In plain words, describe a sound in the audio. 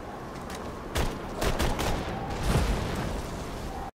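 Gunshots boom in loud, quick bursts.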